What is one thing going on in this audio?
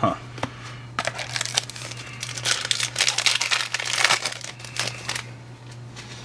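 Foil card packs crinkle and rustle as hands tear them open.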